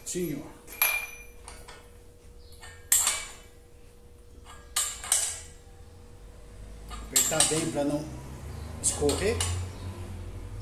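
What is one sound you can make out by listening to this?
Metal clanks sharply on a pipe bender.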